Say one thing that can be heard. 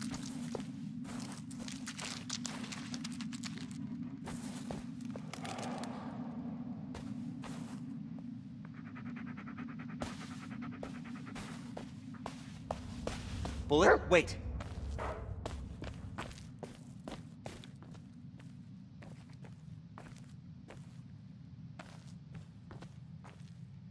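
Footsteps crunch on loose gravel and rubble.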